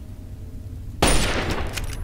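A gun fires once with a loud blast.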